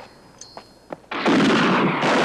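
Loose rocks and gravel slide and clatter down a slope.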